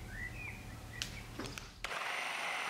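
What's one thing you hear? A plastic lid clicks into place on a container.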